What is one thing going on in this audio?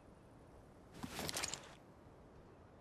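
A heavy object clunks into place.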